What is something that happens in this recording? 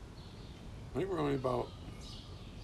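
An elderly man speaks briefly, close by.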